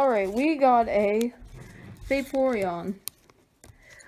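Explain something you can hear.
Trading cards rustle and slide as a hand flips through them.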